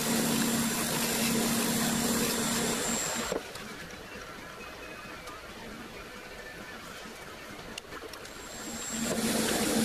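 A wood lathe whirs steadily as it spins, then winds down and starts up again.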